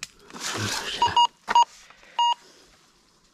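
A metal detector beeps several times in short tones.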